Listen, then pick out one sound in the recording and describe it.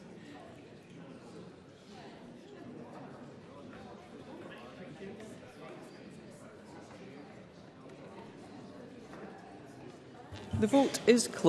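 A man speaks steadily through a microphone in a large hall.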